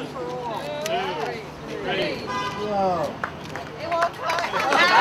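A woman speaks to a small crowd outdoors.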